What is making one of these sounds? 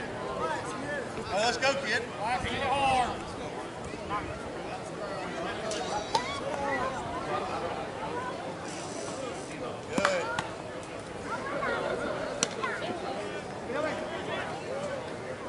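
Men talk and call out across an open field.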